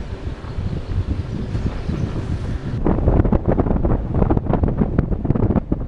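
A car engine hums as the car drives along a street.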